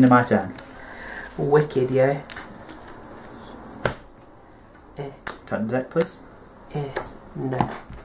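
Playing cards and game pieces are placed and tapped on a table.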